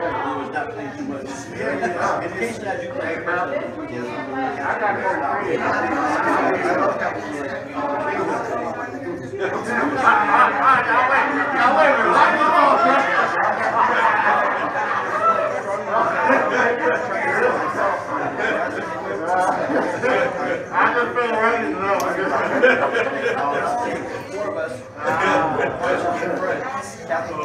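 An elderly man preaches with animation through a microphone and loudspeakers.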